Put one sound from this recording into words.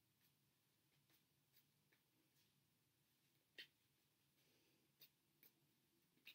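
Cards are shuffled by hand with soft flicks and taps.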